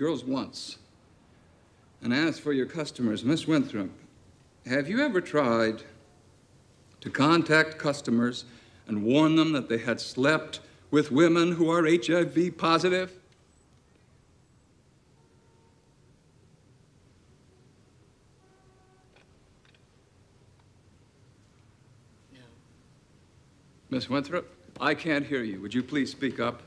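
A man speaks in a firm, measured voice in a room with a slight echo.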